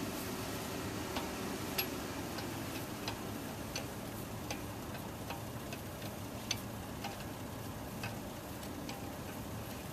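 Wheel nuts rattle and scrape as they are turned by hand.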